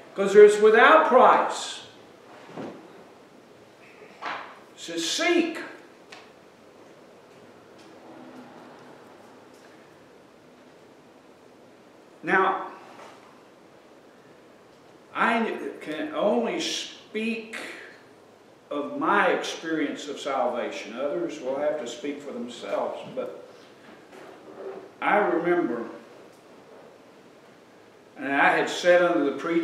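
An elderly man speaks with animation through a microphone, pausing often.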